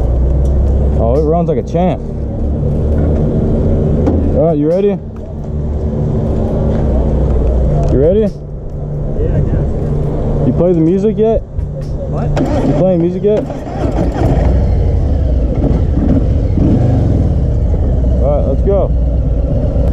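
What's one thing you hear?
A motorcycle engine revs up and down several times.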